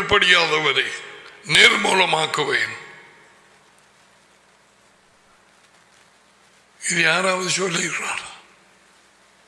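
An elderly man speaks with animation into a close microphone, in short bursts with pauses.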